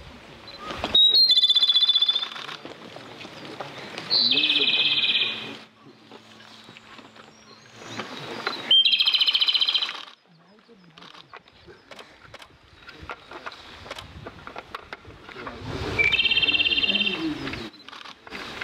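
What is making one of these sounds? A small songbird sings loud trilling phrases close by, with pauses between them.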